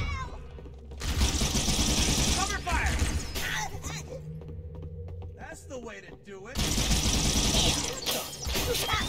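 A weapon fires rapid bursts of energy bolts.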